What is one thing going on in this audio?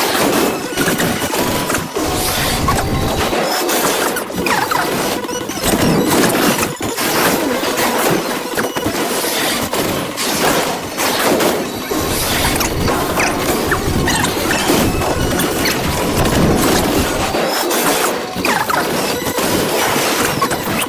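Magical blasts and energy attacks crash and boom loudly.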